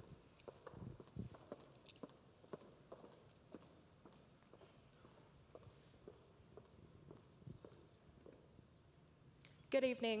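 Footsteps click across a wooden stage in a large hall.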